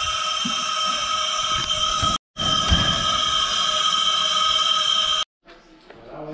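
A steam locomotive chuffs and hisses steam close by.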